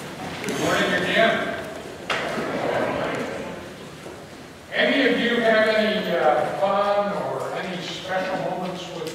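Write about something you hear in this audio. A man speaks with animation through a microphone in a large echoing hall.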